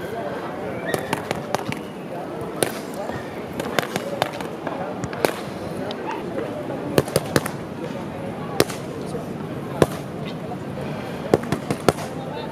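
Boxing gloves thump against focus pads in quick bursts.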